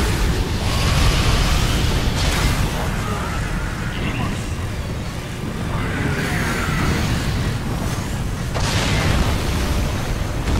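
Blades whoosh and clash in a fight.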